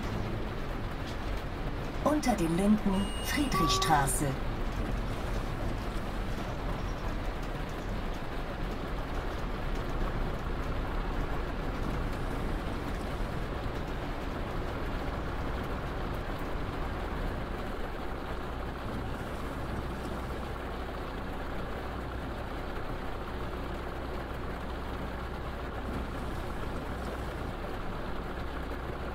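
Rain patters on the road and windscreen.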